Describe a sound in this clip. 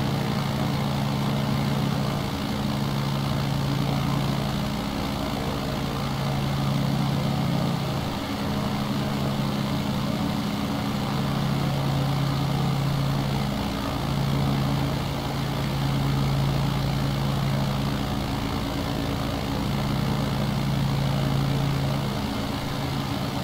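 Wind rushes past the plane.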